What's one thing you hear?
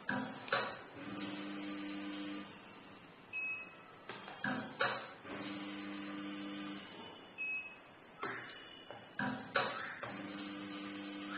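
A small machine motor hums in short bursts.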